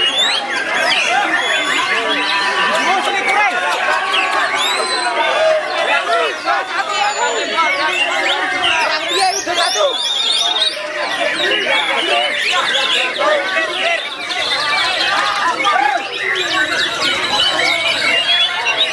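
A caged songbird sings loud, rapid trills and whistles close by.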